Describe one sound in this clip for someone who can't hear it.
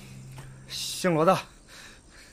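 A man shouts out sharply.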